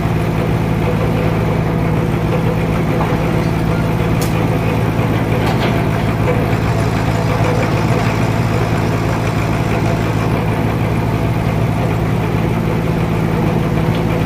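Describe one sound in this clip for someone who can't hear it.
A heavy engine drones steadily nearby.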